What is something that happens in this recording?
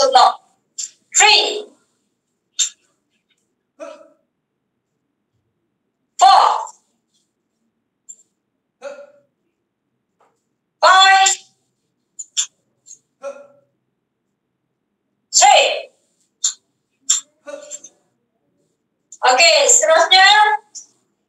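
A young woman shouts sharply in short bursts, heard through an online call.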